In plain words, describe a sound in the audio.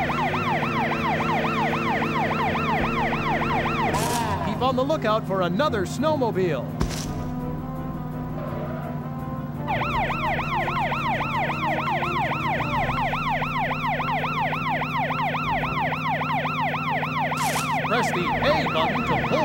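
A police siren wails rapidly up and down.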